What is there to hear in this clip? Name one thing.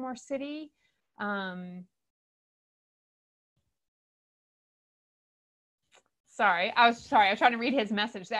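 A middle-aged woman speaks calmly through a microphone, with pauses.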